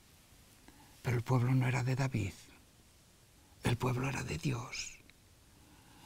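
An elderly man speaks calmly and clearly into a nearby microphone.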